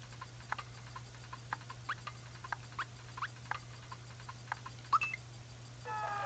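Short electronic blips sound in quick succession.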